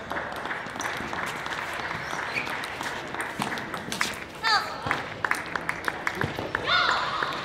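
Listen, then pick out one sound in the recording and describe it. A table tennis ball clicks back and forth between paddles and table in a large hall.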